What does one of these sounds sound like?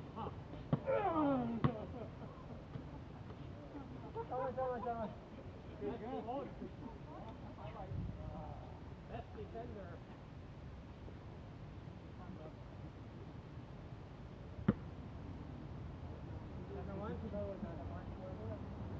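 Young men shout and call out to each other nearby, outdoors.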